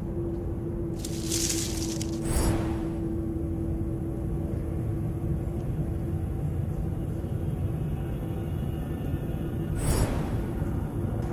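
A shimmering magical chime rings out.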